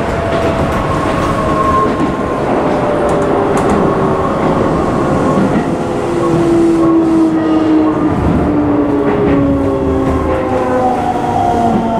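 Train wheels squeal with falling whines as the train brakes into a station.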